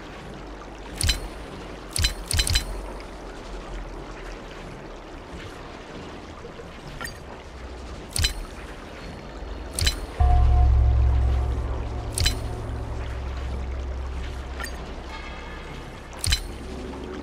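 Short electronic clicks and chimes sound as moves are entered in a game.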